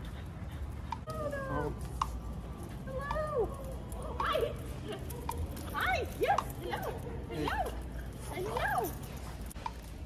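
A young woman talks to dogs in a high, cooing voice.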